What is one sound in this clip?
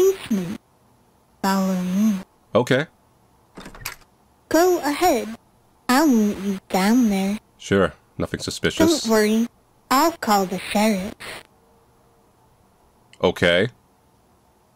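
A young woman speaks nearby with animation.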